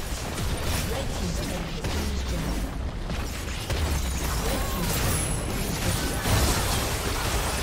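Heavy blows and explosions thud repeatedly.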